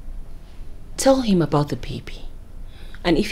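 A young woman speaks firmly and with animation close by.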